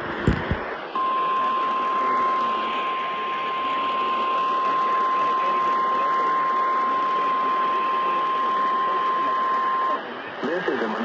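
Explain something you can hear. A steady high tone whines from a radio.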